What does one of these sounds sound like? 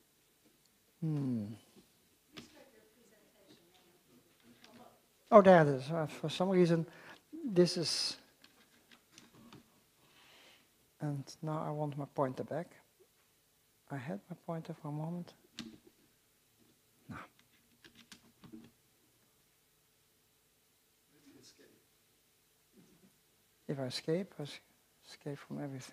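An elderly man lectures calmly through a microphone in a large hall, with pauses.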